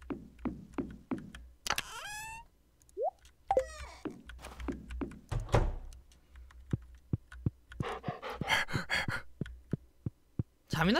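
Footsteps tap steadily.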